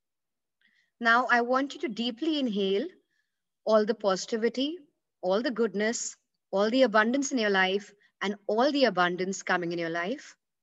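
A woman speaks calmly and closely into a microphone, in short phrases with pauses.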